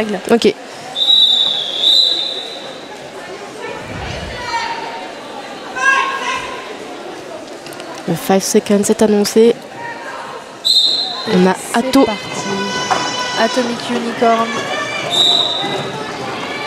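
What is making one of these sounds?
A referee's whistle blows sharply several times in a large echoing hall.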